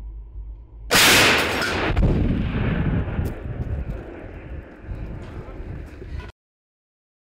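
A loud explosion booms close by and rumbles away.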